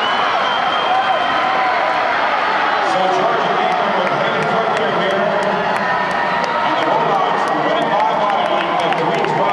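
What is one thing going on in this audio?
Swimmers splash through water.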